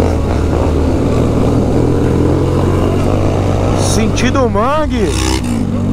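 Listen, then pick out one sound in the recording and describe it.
Wind rushes past a moving motorcycle.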